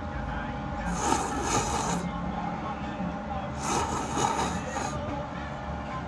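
A person slurps noodles loudly up close.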